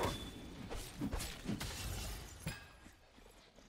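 Sword strikes clash in quick bursts.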